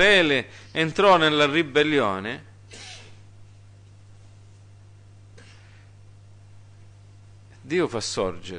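A middle-aged man speaks with feeling into a microphone, pausing between phrases.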